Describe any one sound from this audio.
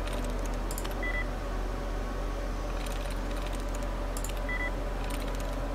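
A computer terminal gives a short high beep.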